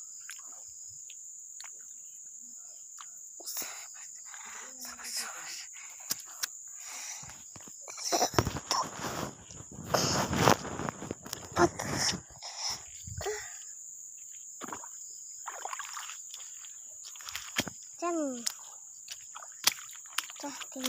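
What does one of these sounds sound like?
Grass and brush rustle against the legs of someone walking.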